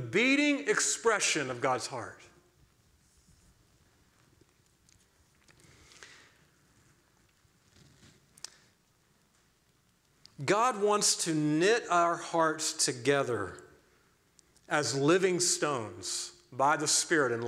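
A man speaks with animation through a microphone, pausing now and then.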